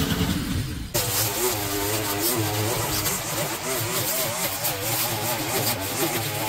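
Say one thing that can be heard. A string trimmer whines and buzzes, its pitch wavering as it cuts grass.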